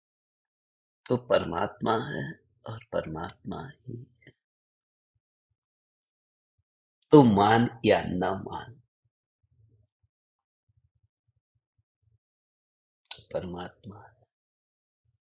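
A middle-aged man speaks calmly and close to a microphone, in short bursts with long pauses.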